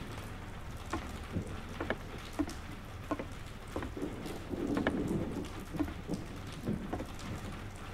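A man's footsteps tread slowly across a wooden floor.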